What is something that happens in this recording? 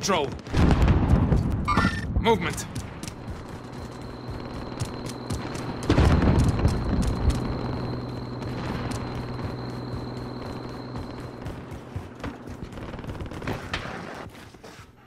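Footsteps run across pavement.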